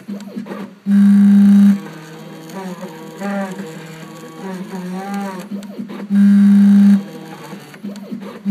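A milling machine whines steadily as its bit cuts into plastic.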